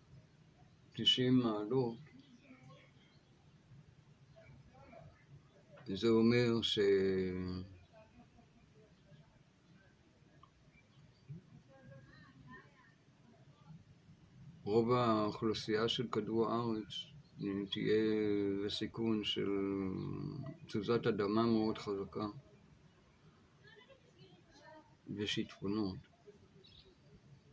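An elderly man speaks calmly and slowly close by, with long pauses.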